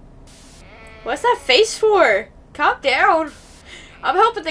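Sheep bleat loudly in warbling cries.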